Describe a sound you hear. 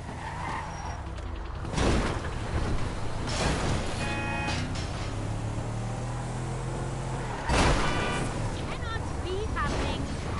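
A car engine hums steadily as a vehicle drives along a road.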